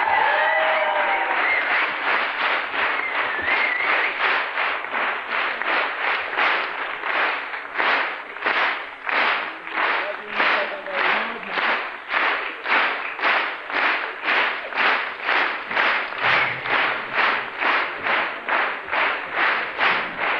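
An audience claps in steady rhythm in a large hall.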